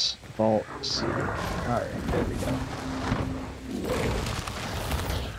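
Dry material crackles and rustles in hands.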